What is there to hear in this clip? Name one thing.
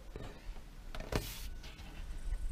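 A plastic gutter part knocks and rattles as it is handled.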